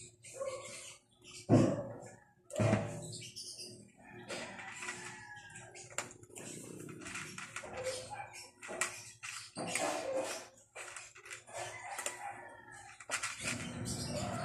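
A cat crunches dry food close by.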